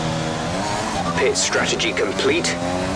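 A racing car engine revs up loudly and accelerates.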